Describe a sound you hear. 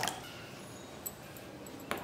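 A spoon scrapes and stirs seeds in a metal bowl.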